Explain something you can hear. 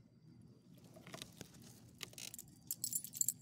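Fabric rustles and brushes right against the microphone.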